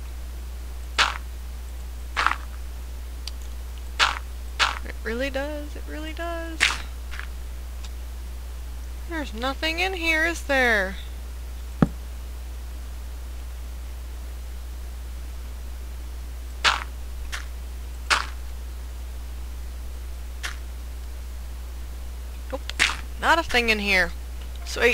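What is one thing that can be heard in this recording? Earth crunches in short bursts as blocks are dug out.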